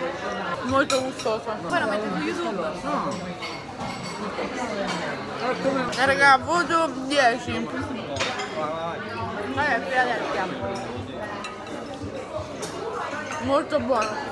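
A young woman talks and laughs close by with animation.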